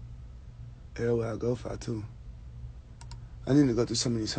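A man speaks casually, close by through a phone's microphone.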